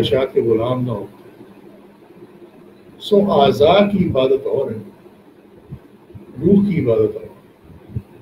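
An elderly man speaks calmly into a microphone, with pauses between phrases.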